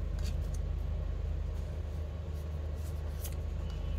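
Playing cards rustle and flick as they are shuffled in hand.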